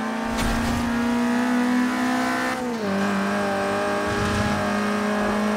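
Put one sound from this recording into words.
A sports car engine roars at high revs.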